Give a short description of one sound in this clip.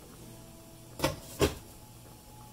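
A metal pot lid clanks as it is set down on a stove.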